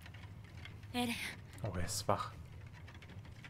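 A young woman speaks softly and close.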